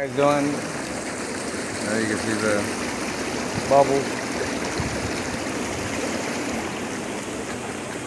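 Water bubbles and churns steadily.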